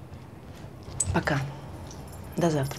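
Another young woman answers softly and close by.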